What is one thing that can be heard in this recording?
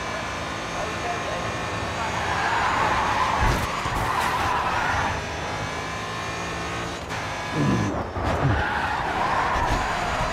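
A racing car engine roars at high speed, its pitch rising and falling through gear changes.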